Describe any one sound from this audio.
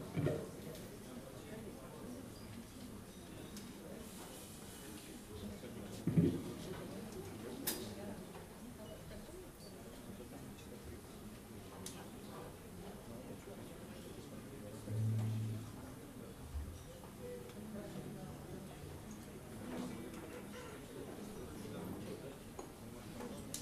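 Drums and cymbals play softly.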